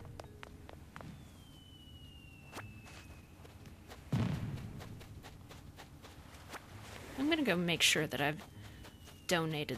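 Light footsteps patter across sand.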